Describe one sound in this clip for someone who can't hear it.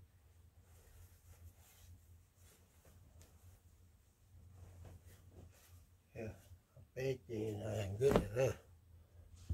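Fabric rustles and flaps as clothes are handled and folded.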